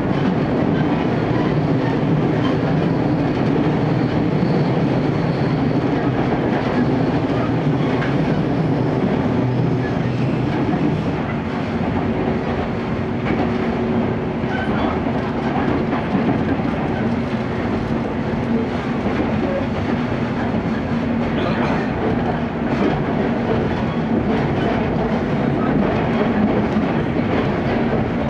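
A train's wheels click and clatter on rail joints.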